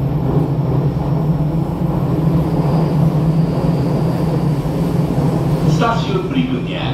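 A train hums and rumbles steadily as it rolls along.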